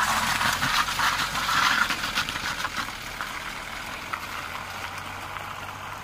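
A car engine runs as the car drives away.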